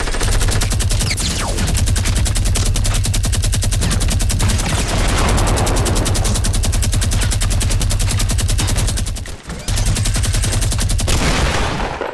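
A gun fires in rapid, loud bursts.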